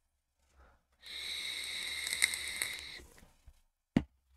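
A young man draws sharply on an electronic cigarette with a hiss.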